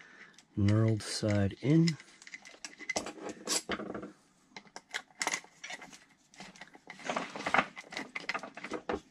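Small plastic parts click and rattle close by.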